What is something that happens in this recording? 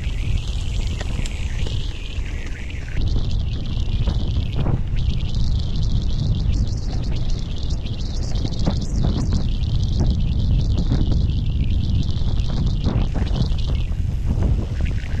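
Bicycle tyres roll and crunch over a dry dirt trail.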